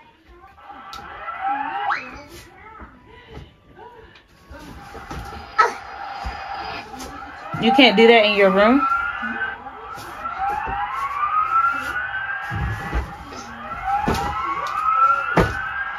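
A toy ride-on plays rising electronic sound effects over and over.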